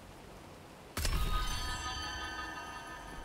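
A gunshot rings out sharply and echoes.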